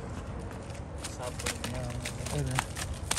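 A freshly caught fish flaps on dirt.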